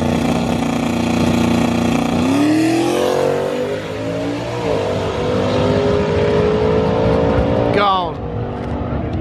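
A car engine idles with a loud, rough rumble, then roars as the car launches and speeds away, shifting gears.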